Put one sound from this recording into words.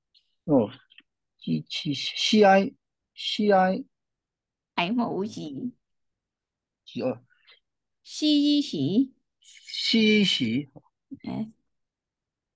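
A woman speaks clearly and slowly over an online call, pausing often.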